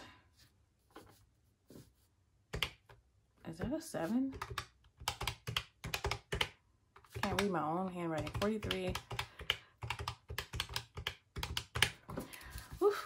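Plastic calculator keys click as fingers tap them quickly.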